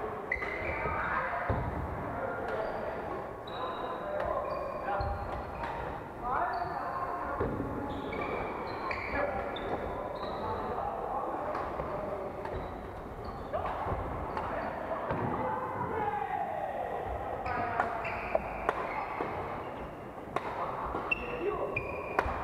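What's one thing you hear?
Players' shoes squeak on the wooden court.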